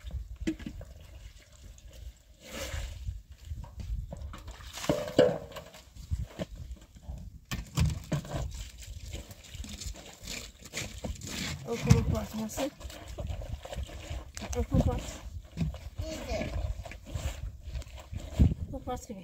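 Wet cloth squelches and splashes as it is scrubbed in a basin.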